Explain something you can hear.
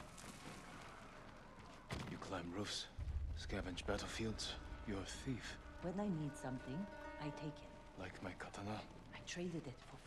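Footsteps thud softly on wooden boards.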